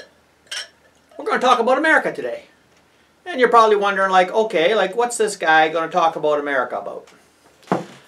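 Beer pours and fizzes into a glass.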